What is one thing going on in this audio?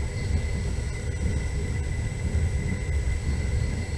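A passing freight train rushes by close alongside.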